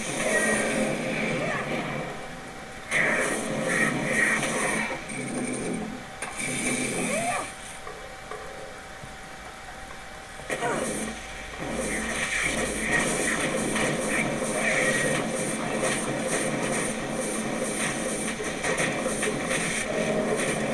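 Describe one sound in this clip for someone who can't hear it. Fiery spells burst and crackle in a video game battle.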